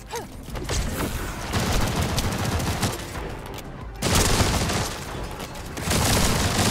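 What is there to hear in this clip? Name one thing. Heavy video game combat sounds crash and thud loudly.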